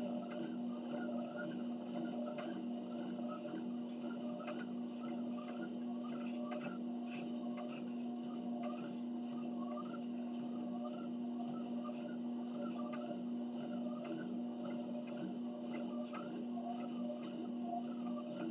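Footsteps thud in a steady rhythm on a treadmill belt.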